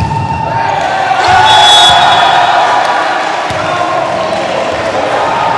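A crowd cheers and applauds in a large echoing hall.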